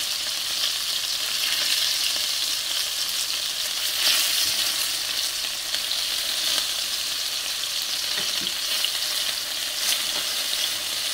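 Meatballs sizzle steadily in hot oil in a pan.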